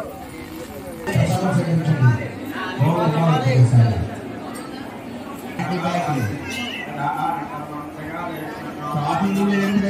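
A large crowd murmurs and chatters nearby.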